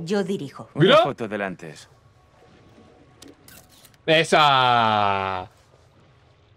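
A young man speaks cheerfully.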